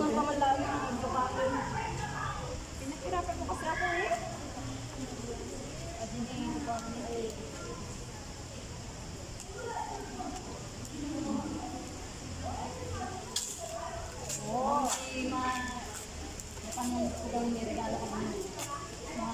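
A woman answers, talking close by.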